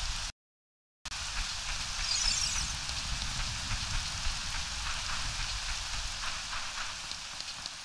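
Footsteps thud softly on wet grass.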